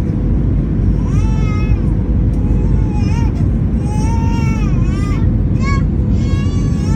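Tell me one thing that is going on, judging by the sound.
Jet engines roar steadily, heard from inside an aircraft cabin.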